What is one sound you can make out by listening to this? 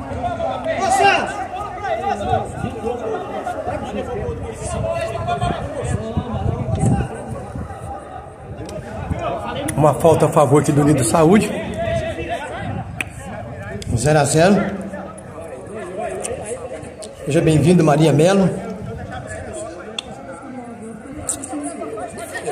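Men shout and call out to each other across an outdoor football pitch.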